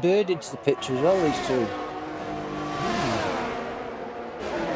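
Racing cars whoosh past close by.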